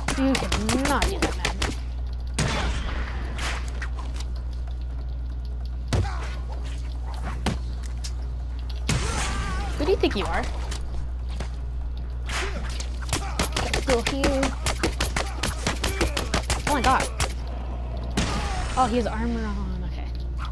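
Punches and kicks thud in a rapid brawl.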